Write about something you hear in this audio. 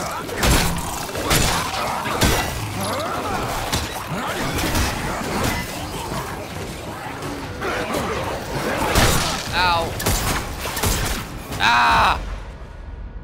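Heavy blows and crashes sound loudly in quick bursts.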